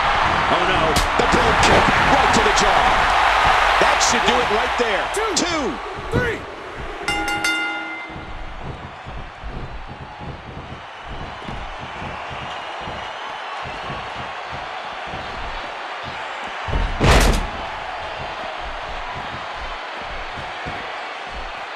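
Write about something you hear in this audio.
A large crowd cheers and roars loudly, then quiets to a low murmur.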